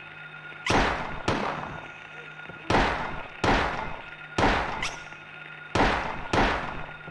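Heavy knocks bang on a door in pairs, each ringing out in a reverberant space.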